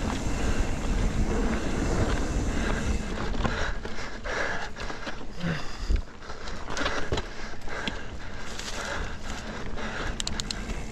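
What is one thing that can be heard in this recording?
Bicycle tyres crunch and bump over a dirt trail.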